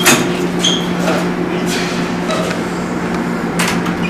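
A swinging door bangs shut.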